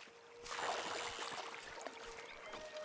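A fish splashes in the water.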